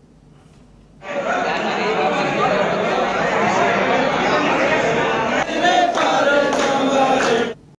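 A crowd of men talks and chants loudly close by.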